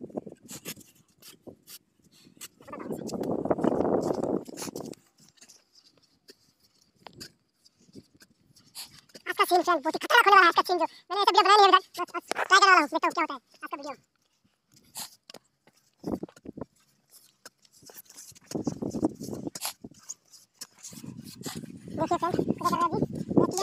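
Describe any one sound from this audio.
A shovel scrapes and digs into wet sand.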